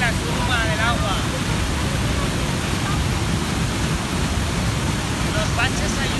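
Floodwater rushes and roars loudly over a weir.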